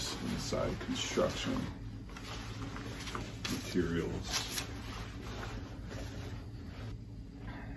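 Fabric rustles as a jacket is handled and folded.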